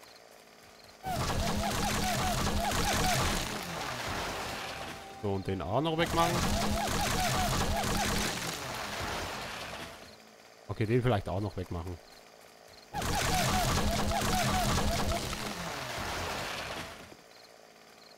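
A chainsaw roars as it cuts into a tree trunk.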